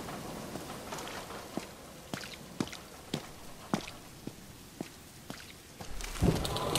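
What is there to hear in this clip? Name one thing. Footsteps tread on hard ground at an even pace.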